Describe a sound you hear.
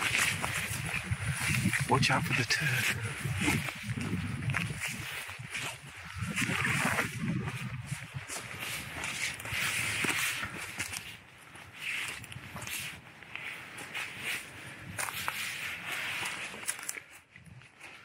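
Twigs and dry branches rustle and snap close by.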